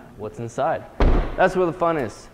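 A car's rear hatch slams shut with a heavy thud.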